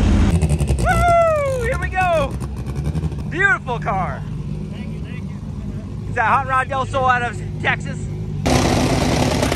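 A race car engine rumbles loudly at idle.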